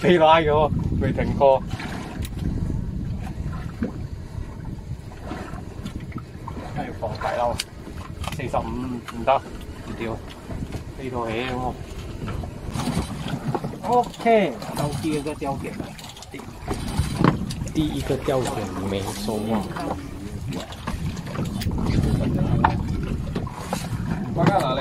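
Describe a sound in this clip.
A boat motor rumbles steadily.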